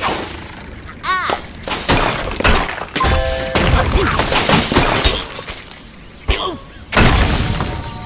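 Wooden blocks crash and clatter as a structure breaks apart.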